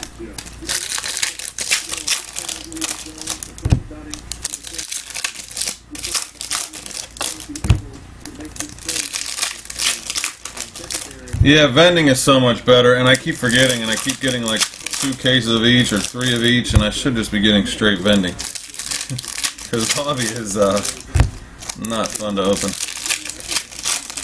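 Foil wrappers crinkle and tear as they are opened.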